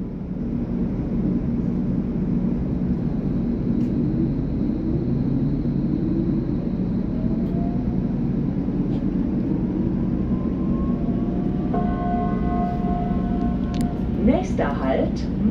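An electric train's motor whines, rising in pitch as it pulls away.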